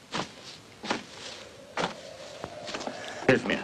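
Footsteps thud on grassy ground.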